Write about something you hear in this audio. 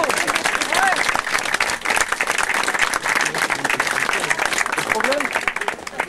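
A crowd claps hands in applause.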